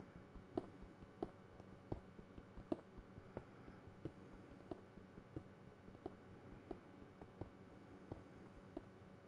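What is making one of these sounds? A pickaxe chips at stone with quick, steady, repeated knocks.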